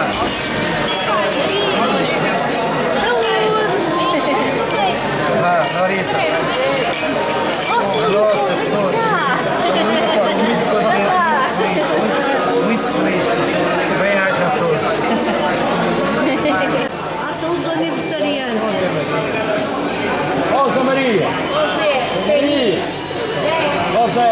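A crowd of men and women talk and cheer loudly in an echoing hall.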